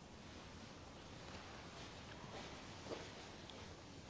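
Footsteps pad softly across a floor.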